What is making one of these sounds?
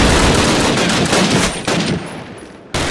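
A rifle fires in sharp, loud shots nearby.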